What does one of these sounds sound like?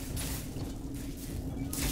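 A cutting torch sizzles and sparks against metal.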